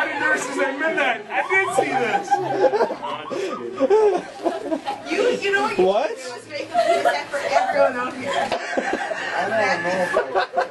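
A young woman laughs and shrieks with excitement.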